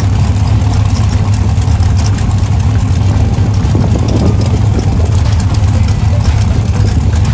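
A drag racing car's engine idles with a loud, steady, rough rumble outdoors.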